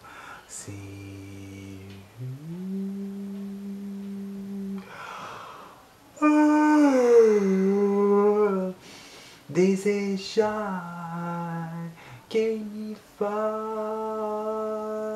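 A young man sings long held notes close by.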